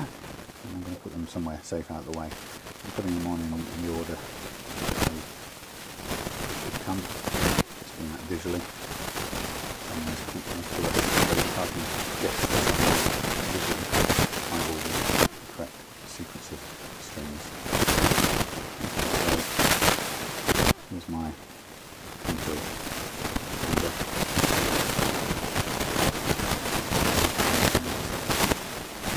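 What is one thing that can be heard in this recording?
A man talks calmly and close by into a clip-on microphone.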